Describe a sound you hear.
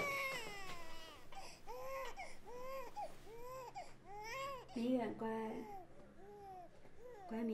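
A baby cries in short, rising and falling wails.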